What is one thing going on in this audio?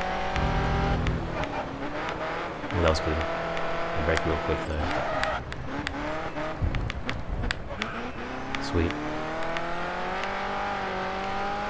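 A racing car engine roars, its pitch rising and falling as gears shift.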